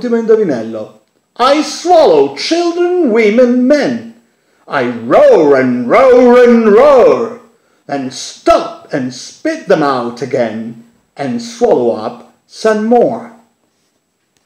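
A man speaks calmly and with expression close by.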